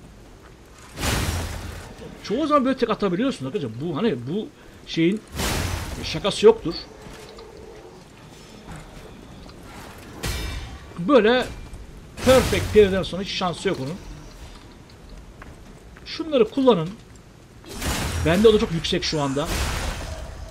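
Heavy sword blows strike and clang.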